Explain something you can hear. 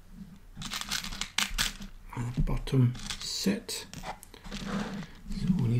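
Small metal snaps click and rattle against a plastic box.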